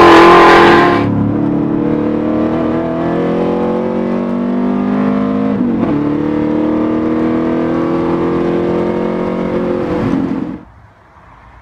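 A car engine drones steadily from inside the cabin, its pitch rising and dropping with gear changes.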